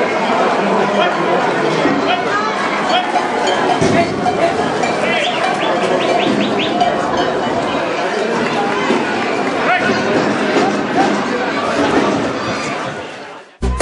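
A crowd of spectators chatters and shouts in a noisy open arena.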